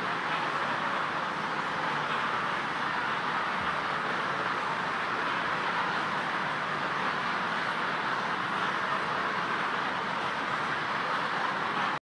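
A crowd prays aloud together, a steady murmur of many voices.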